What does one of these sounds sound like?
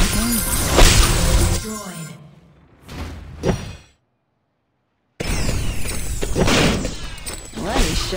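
Game spell effects whoosh and burst in quick bursts.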